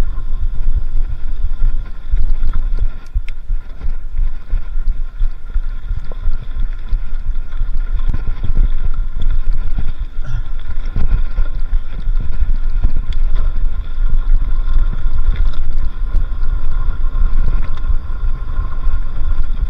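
Wind buffets loudly against the microphone.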